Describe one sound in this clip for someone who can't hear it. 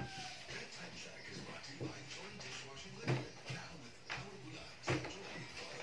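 A plastic chair creaks and thumps as someone climbs onto it.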